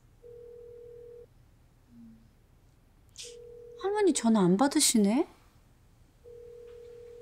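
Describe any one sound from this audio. A phone line's ringing tone beeps steadily through a phone.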